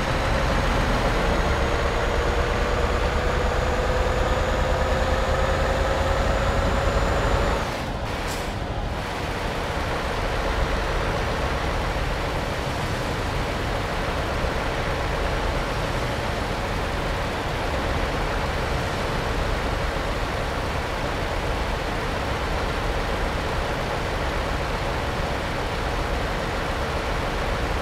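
A heavy truck engine drones, slowly rising in pitch before easing off.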